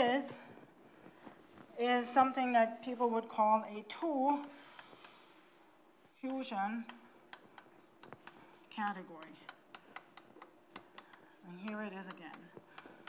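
A woman speaks calmly, as if lecturing.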